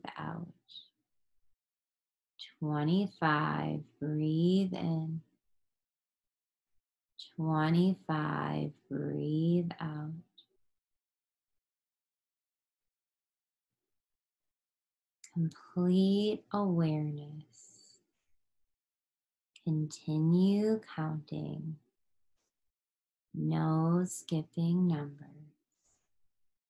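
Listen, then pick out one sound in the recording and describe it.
A woman speaks calmly in short phrases with pauses, close to a microphone.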